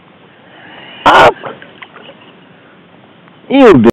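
A fish splashes into shallow water.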